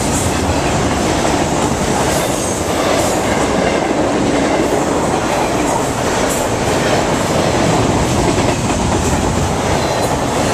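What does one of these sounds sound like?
A long freight train rumbles past close by with a steady roar.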